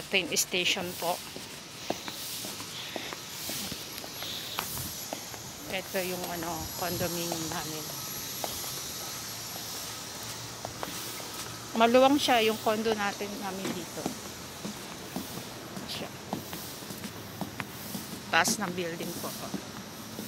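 A woman speaks close by in short bursts.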